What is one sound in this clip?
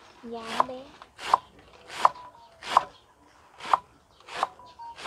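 A knife chops rhythmically through scallions onto a wooden board.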